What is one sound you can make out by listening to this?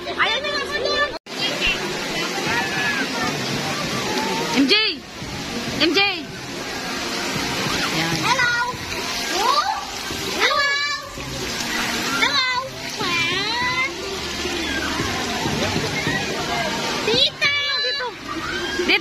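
Children shout and squeal.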